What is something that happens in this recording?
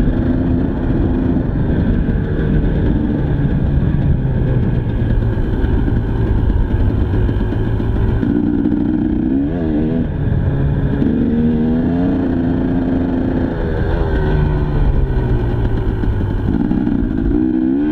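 A dirt bike engine revs loudly, rising and falling as the rider shifts gears.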